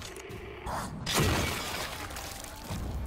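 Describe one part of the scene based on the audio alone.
A heavy blow strikes a creature with a wet thud.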